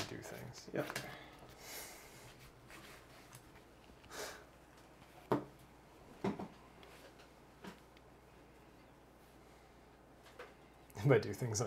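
Playing cards tap and slide on a table.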